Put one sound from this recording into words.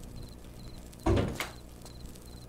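A heavy door thuds open.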